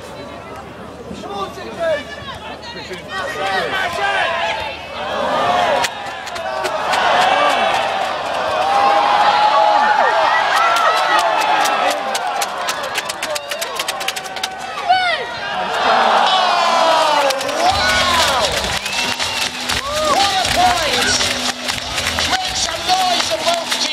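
A large crowd of spectators cheers and shouts loudly outdoors.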